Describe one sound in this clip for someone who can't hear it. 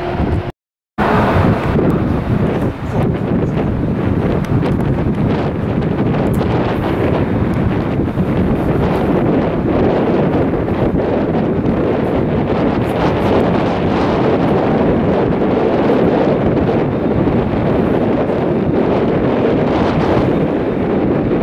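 A jet airliner's engines roar loudly and steadily as it taxis nearby.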